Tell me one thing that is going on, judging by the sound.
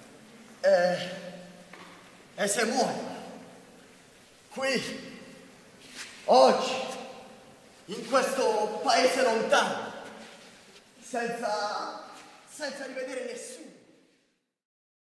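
A young man sings out loudly in long, echoing phrases.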